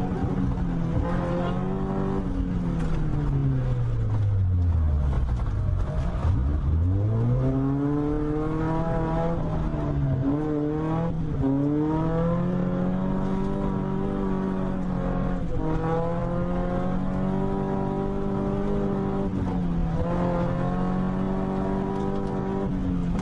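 A car engine revs hard, its pitch dropping low and rising again, then holding steady.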